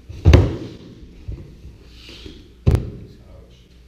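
Bodies thud heavily onto a padded mat.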